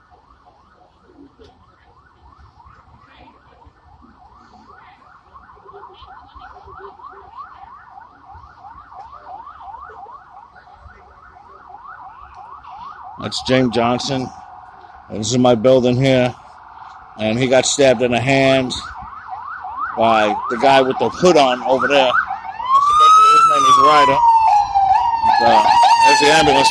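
A police siren yelps rapidly nearby, growing louder, then switches to a wail.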